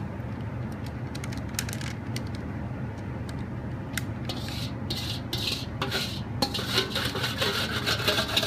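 Thick melted chocolate pours softly into a pan.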